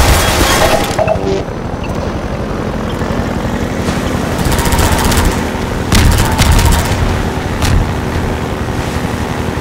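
An airboat engine roars steadily.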